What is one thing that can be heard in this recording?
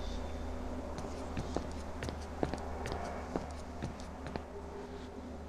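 Footsteps tread slowly on a hard floor.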